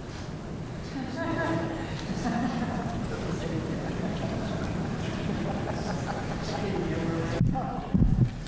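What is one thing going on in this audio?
A man speaks calmly over a microphone.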